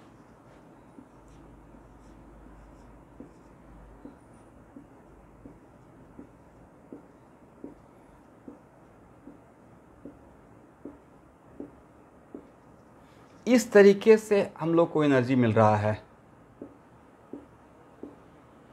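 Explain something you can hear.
A marker taps on a whiteboard in short, regular strokes.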